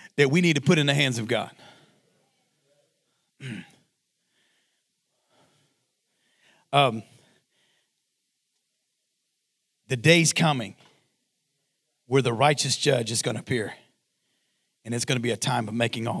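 A man speaks with animation into a microphone, pausing between phrases.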